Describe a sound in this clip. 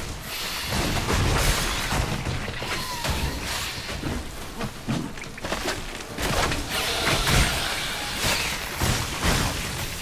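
A large creature roars and growls.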